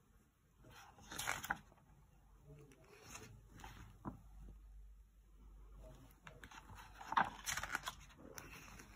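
Book pages rustle and turn.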